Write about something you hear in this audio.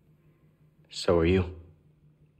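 A young man answers quietly.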